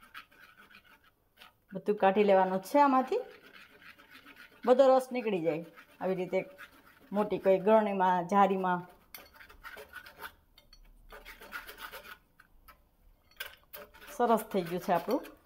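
A spoon scrapes and presses pulp through a metal sieve.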